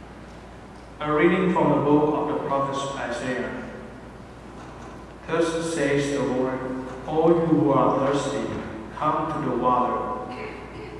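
A young man reads aloud calmly through a microphone in a large echoing hall.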